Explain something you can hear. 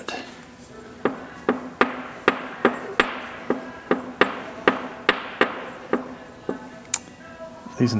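Small metal parts click sharply at a steady pace.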